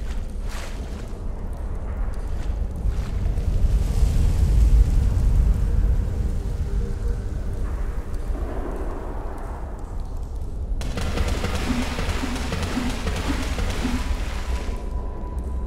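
Feet splash and wade through shallow water.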